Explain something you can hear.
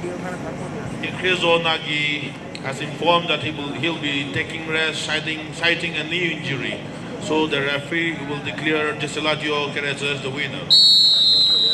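A man announces loudly over a loudspeaker.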